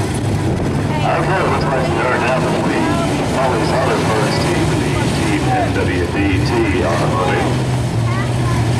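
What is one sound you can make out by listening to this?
A crowd of people cheers and shouts in the distance.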